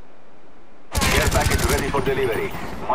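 A submachine gun fires a rapid burst of shots.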